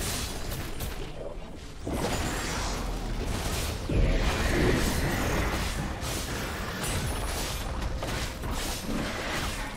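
Magic blasts and weapon hits clash in a computer game battle.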